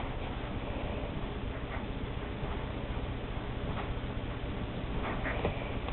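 Newborn puppies squeak and whimper softly.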